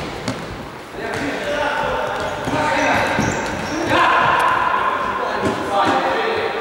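Men shout to each other in a large echoing hall.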